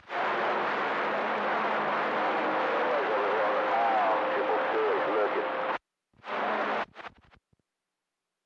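Radio static hisses and crackles through a receiver, cutting off abruptly.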